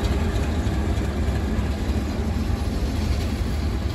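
A train rumbles past on the tracks close by.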